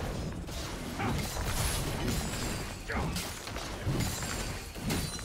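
Fantasy battle effects whoosh and clash in quick bursts.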